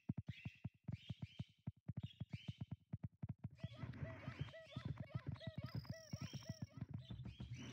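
A game character's footsteps patter quickly and steadily.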